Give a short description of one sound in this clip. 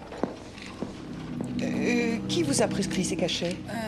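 A middle-aged woman speaks with animation.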